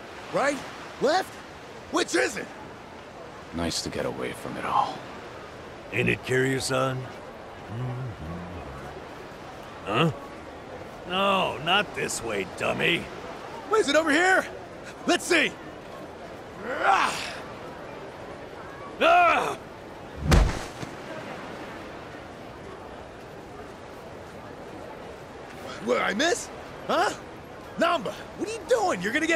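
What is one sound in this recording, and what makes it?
Men talk and shout with animation, close by.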